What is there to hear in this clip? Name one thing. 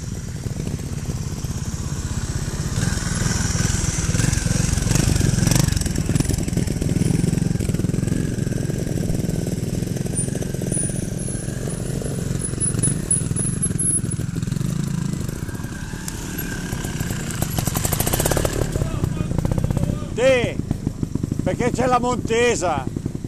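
Trial motorbike engines rumble and rev close by.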